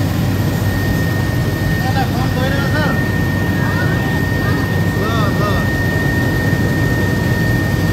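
A man speaks calmly into a headset microphone, heard over the engine noise.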